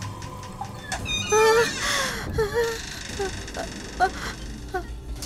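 A woman gasps and speaks in a frightened, trembling voice nearby.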